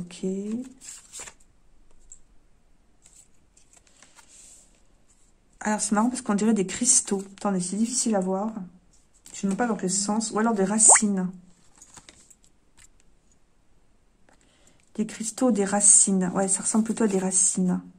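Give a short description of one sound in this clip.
Playing cards are laid down and slide softly on a cloth.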